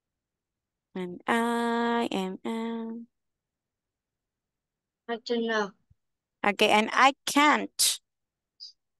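A woman speaks slowly through an online call, drawing out her words.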